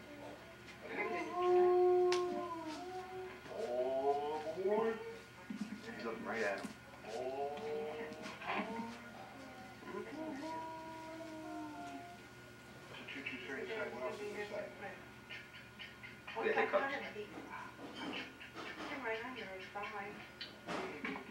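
An elderly man talks softly and playfully, close by.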